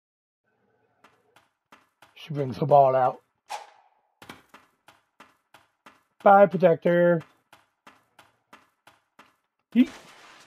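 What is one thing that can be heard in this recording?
Light footsteps patter quickly across a hard floor.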